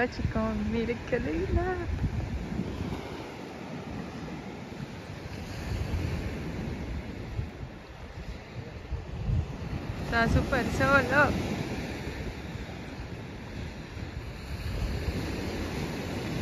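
Small waves wash onto a sandy beach.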